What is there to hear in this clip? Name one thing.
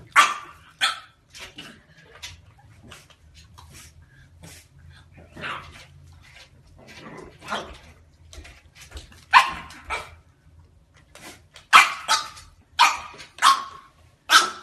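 A puppy barks and growls in short yaps.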